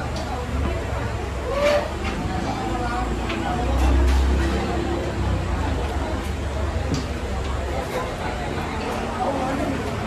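Spoons clink against dishes.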